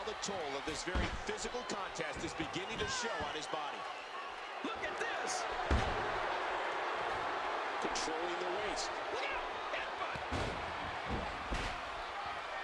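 Heavy bodies slam onto a wrestling ring's canvas with loud thuds.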